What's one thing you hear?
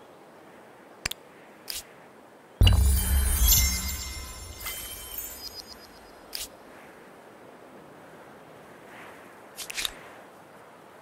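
Soft interface clicks sound now and then.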